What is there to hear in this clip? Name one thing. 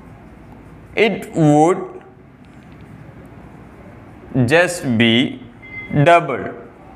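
A young man speaks calmly, close by, in short phrases.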